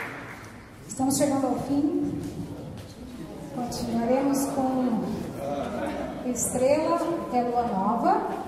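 A mixed choir of men and women sings together.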